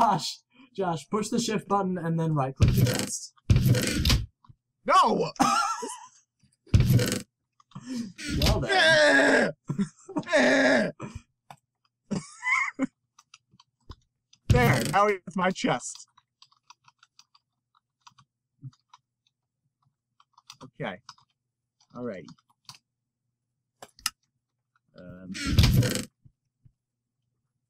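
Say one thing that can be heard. A wooden chest creaks open and thuds shut.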